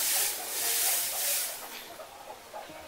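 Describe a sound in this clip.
Dry hay rustles as it is dropped into a trough.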